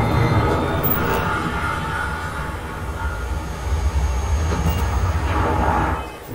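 Industrial machinery hums with a low, steady drone.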